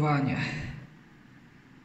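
An elevator chime rings brightly.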